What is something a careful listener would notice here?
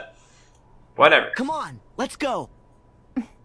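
A young man speaks eagerly, urging the others on.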